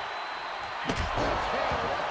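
A wooden stick strikes a body with a sharp crack.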